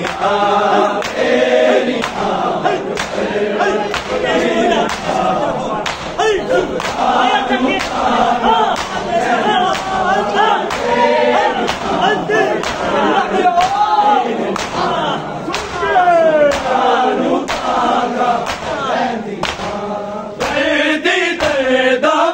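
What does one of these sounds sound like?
A large crowd of men chants loudly in unison.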